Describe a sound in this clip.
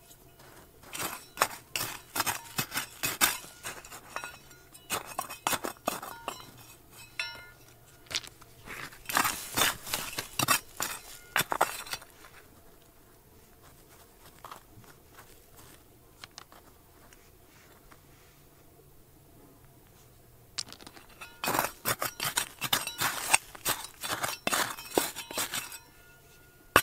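A metal trowel scrapes and digs into gravelly soil.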